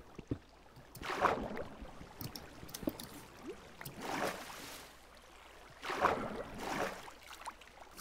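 Water splashes and gurgles in short bursts.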